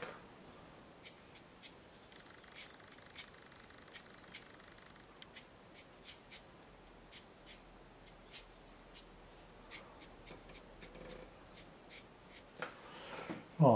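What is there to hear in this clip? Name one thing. A brush dabs and taps lightly on paper.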